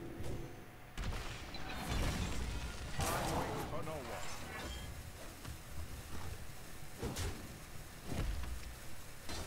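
Game effects whoosh and clash as cards attack.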